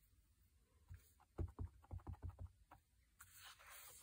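A rubber stamp taps on an ink pad.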